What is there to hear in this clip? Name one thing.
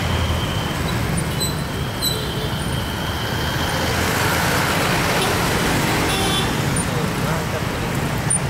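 Motorcycle engines hum steadily close by in traffic.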